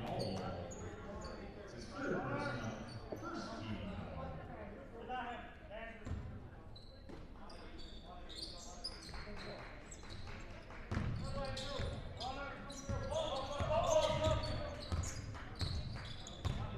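Spectators and players call out and chatter in a large echoing gym.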